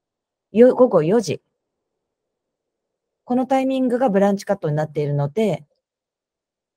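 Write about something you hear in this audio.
A young man speaks calmly into a microphone, as if on an online call.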